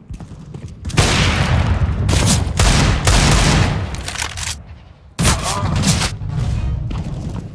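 A pistol fires several rapid shots.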